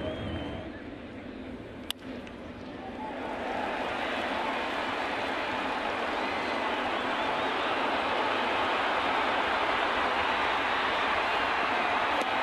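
A large stadium crowd cheers and roars, growing louder.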